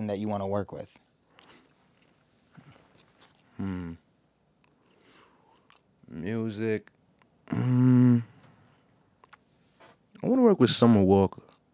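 A young man speaks slowly and calmly into a close microphone, with long pauses.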